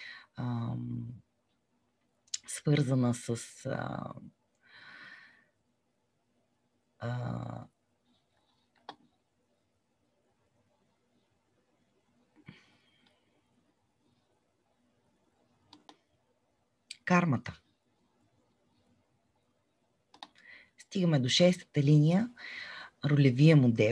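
A woman speaks calmly through an online call, with pauses.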